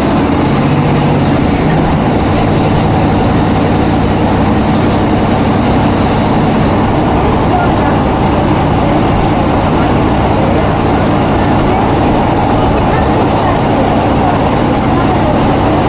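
A train rumbles steadily along the track, heard from inside a carriage.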